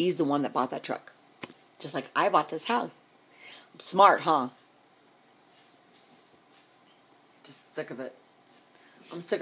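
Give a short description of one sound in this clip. A middle-aged woman talks close up with animation, in short bursts with pauses.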